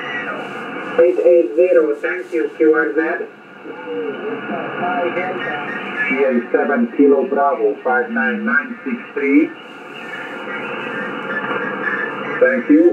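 A man's voice speaks through a radio loudspeaker, crackly and narrow.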